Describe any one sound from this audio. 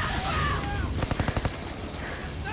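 Automatic gunfire rattles in a short, fast burst.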